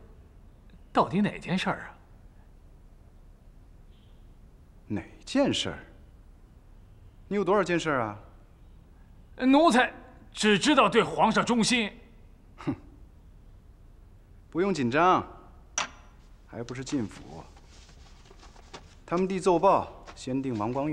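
A young man asks questions calmly, close by.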